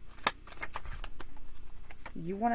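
Cards shuffle and tap together.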